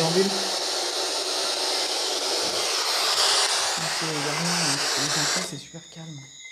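A small handheld device hisses with loud static.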